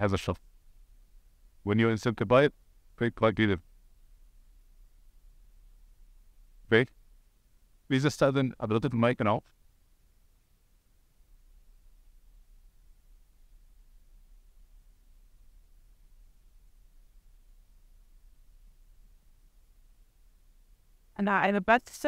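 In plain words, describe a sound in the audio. A man speaks calmly through a microphone in short bursts.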